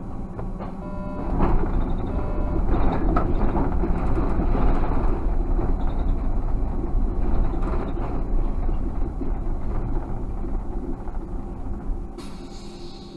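A car drives along a road with a low rumble that quietens as it slows to a stop.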